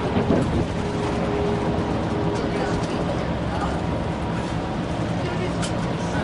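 A vehicle's engine hums steadily while driving.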